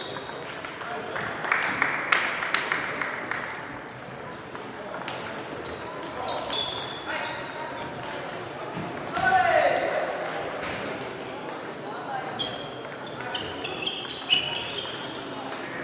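A crowd of people murmurs in the distance.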